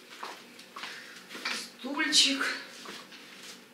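A plastic stool knocks and scrapes as it is lifted.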